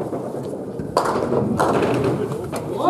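Pins clatter as a ball strikes them.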